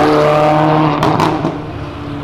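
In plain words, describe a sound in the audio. Motorcycles roar past on a busy road.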